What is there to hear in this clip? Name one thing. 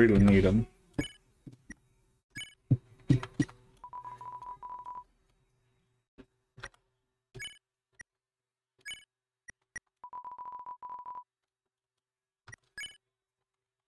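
Short electronic blips sound as a game menu cursor moves.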